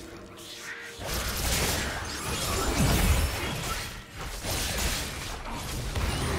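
Game spell effects whoosh and crackle in quick bursts during a fight.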